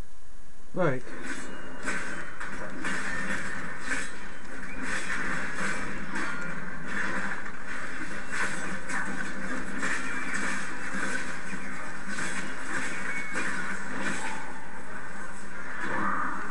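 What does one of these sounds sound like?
Swords clash and strike again and again in a fight, heard through a loudspeaker.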